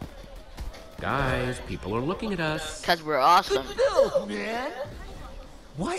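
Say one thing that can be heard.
Young men talk with animation, heard close.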